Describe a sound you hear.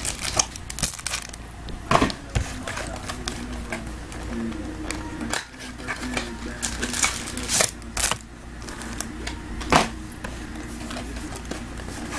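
Cardboard boxes scrape and tap as they are handled.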